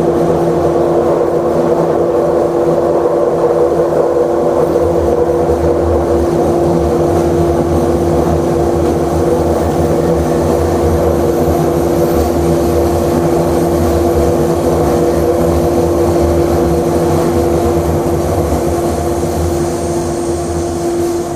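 A train rumbles and roars steadily through a tunnel.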